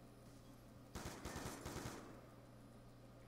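A rifle fires a short burst of shots.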